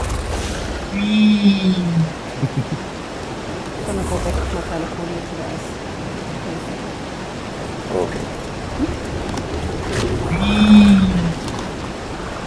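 A creature lets out a short, pitched cry.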